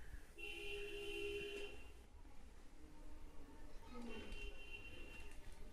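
Bedding rustles softly as a child shifts on a bed.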